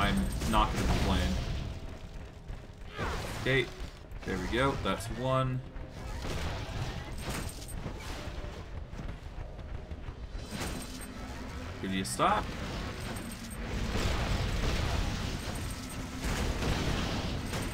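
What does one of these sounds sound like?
Fiery magic blasts whoosh and roar.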